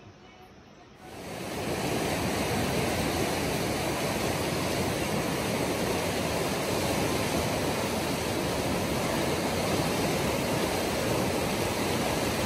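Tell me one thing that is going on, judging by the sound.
A fast river rushes loudly.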